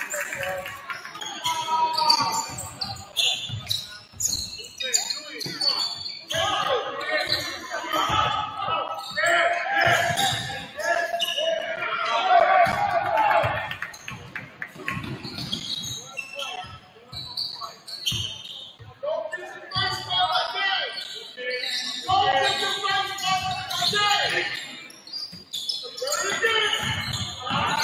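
Spectators talk nearby in an echoing gym.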